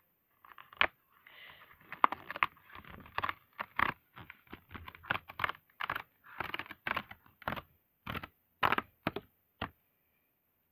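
Plastic packaging crinkles and rustles in someone's hands.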